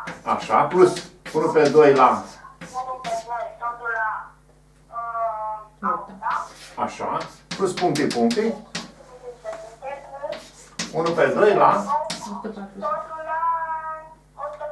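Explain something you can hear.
An elderly man speaks steadily, as if explaining, close by.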